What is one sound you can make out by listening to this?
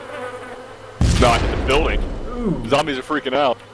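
A grenade explodes in the distance with a deep boom.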